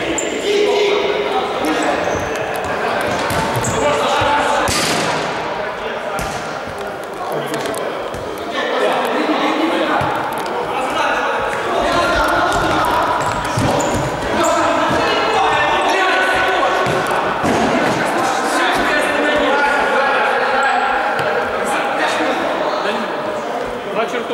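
Men shout and call out to each other across a large echoing hall.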